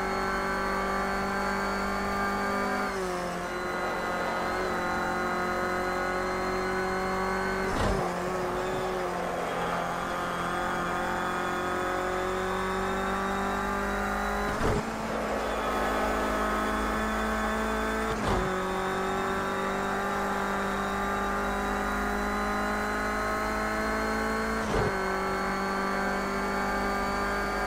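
A car engine drones at high revs, its pitch slowly climbing and dropping at each gear change.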